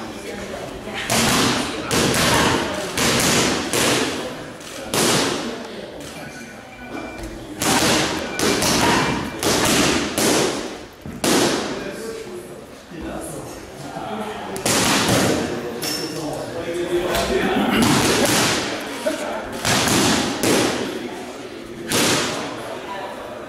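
Boxing gloves smack hard against punch mitts in quick bursts.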